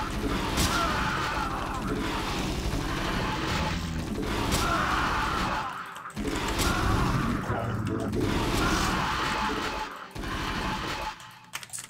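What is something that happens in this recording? Game gunfire and battle effects rattle in bursts.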